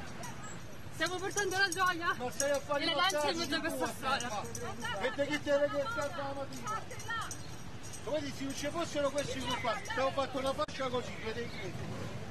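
A young woman speaks loudly and with agitation close by.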